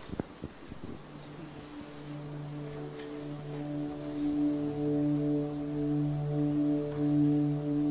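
A keyboard plays soft, sustained chords.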